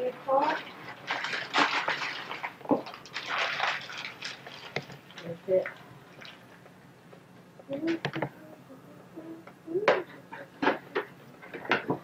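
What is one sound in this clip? Paper rustles and crinkles as gifts are unwrapped.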